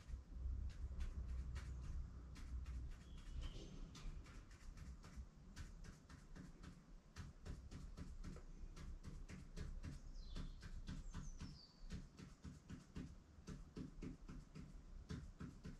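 A marker taps and scratches short strokes on a wall, over and over.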